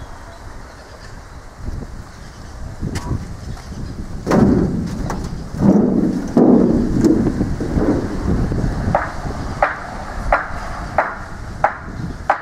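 Wind blows across an open outdoor space.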